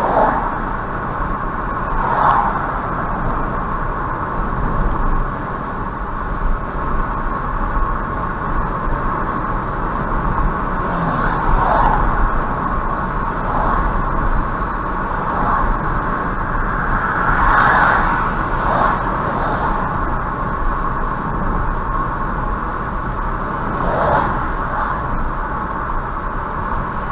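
Tyres roll steadily on a highway with a low road rumble.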